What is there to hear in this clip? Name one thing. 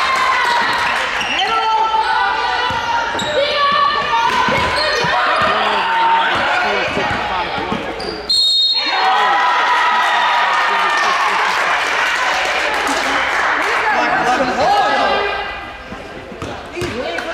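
Basketball shoes squeak sharply on a wooden court in an echoing gym.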